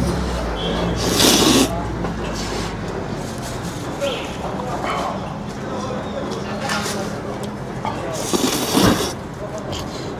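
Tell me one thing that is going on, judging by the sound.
A man loudly slurps noodles.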